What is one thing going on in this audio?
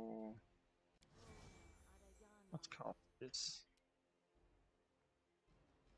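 A magic spell crackles and shimmers as it is cast.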